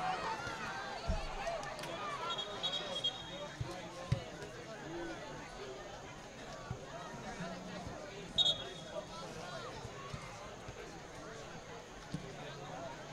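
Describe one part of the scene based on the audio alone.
Spectators chatter and call out nearby, outdoors.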